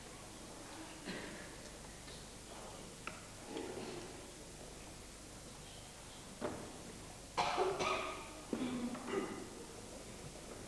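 An elderly man speaks calmly, echoing in a large hall.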